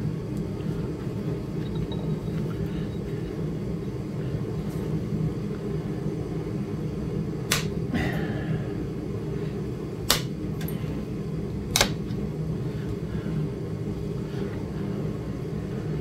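A small electric grinder hums steadily.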